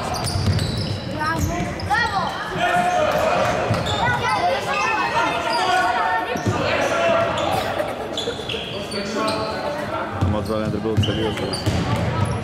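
Young men shout to each other on the court.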